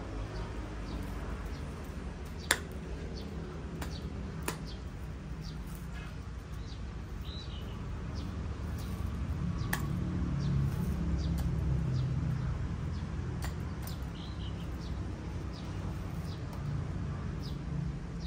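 Scissors snip twigs with sharp clicks.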